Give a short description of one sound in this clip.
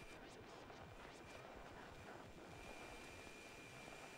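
Footsteps walk slowly on a hard floor.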